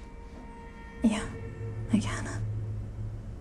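A young woman speaks in a soft, shaky voice close by.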